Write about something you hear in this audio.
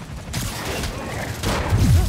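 A heavy metal object crashes down.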